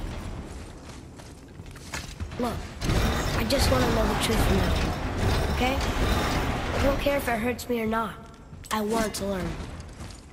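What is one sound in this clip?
A heavy crank clanks and ratchets as it is turned.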